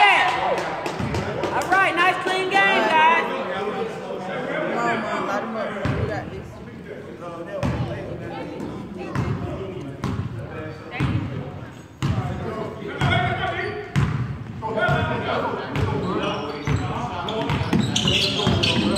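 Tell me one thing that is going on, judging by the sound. Young men and spectators chatter and call out in a large echoing gym.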